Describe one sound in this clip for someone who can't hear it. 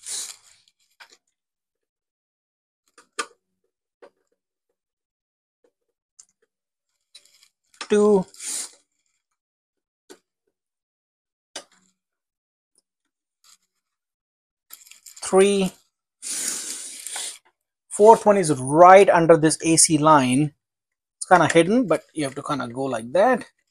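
Small plastic and metal parts click softly as hands handle them.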